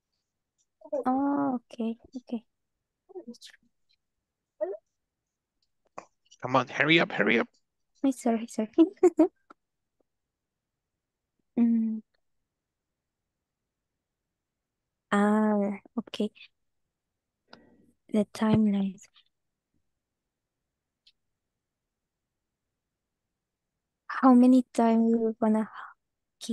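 A woman speaks calmly in short bursts over an online call.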